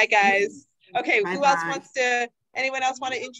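An elderly woman speaks over an online call.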